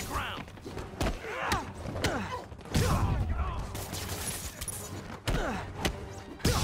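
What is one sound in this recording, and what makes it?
Punches land with heavy thuds in a brawl.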